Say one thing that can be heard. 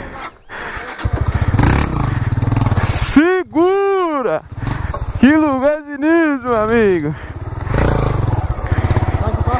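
A motorcycle engine idles with a steady chugging close by.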